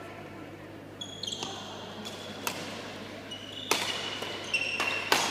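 Sport shoes squeak on the court floor.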